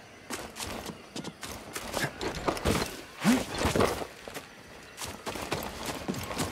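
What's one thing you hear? Footsteps thud quickly.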